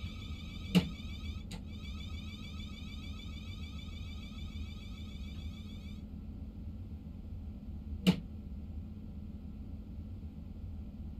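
A train engine hums low and steadily as the train rolls slowly along.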